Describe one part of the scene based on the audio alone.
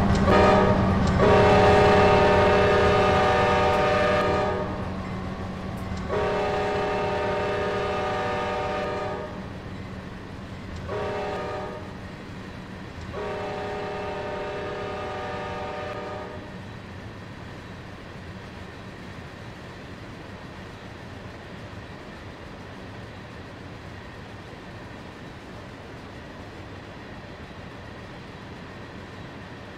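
A freight train rumbles and clatters along the tracks.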